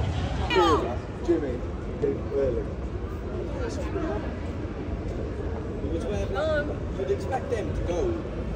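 Young women talk and laugh as they walk along a street.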